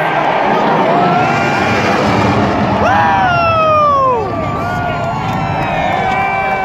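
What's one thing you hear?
A military jet roars low overhead.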